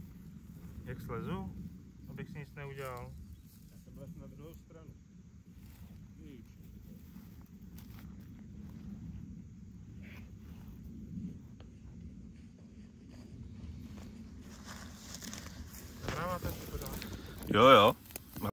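A young man speaks calmly close by, outdoors.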